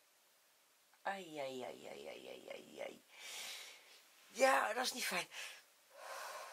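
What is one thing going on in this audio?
A woman speaks close by, laughing and with animation.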